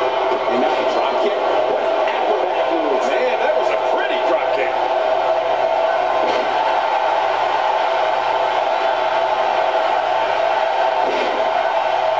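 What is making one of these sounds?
Bodies slam onto a wrestling mat with dull thuds.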